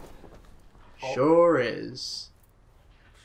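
A man speaks in a low, menacing voice.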